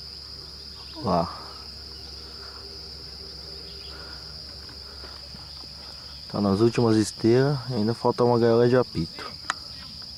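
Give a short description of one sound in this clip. A man calls out loudly nearby, outdoors.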